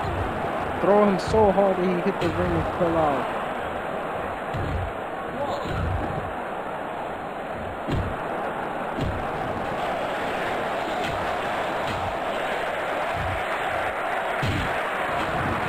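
Heavy thuds sound as wrestlers slam into the floor.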